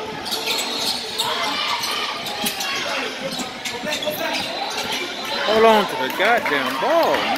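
A basketball bounces on a hardwood floor in an echoing gym.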